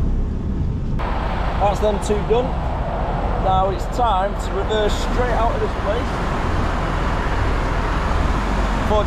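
Wind rushes through an open bus window.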